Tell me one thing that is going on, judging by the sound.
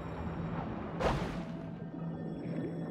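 A sparkling chime rings out as a swimmer passes through a glowing ring.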